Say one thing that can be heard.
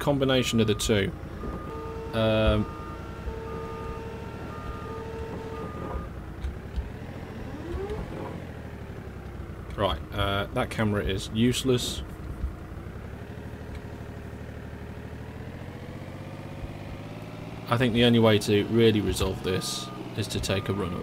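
A forklift engine hums steadily.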